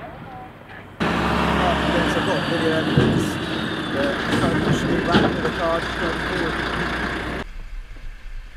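Several men and women shout and talk over one another outdoors.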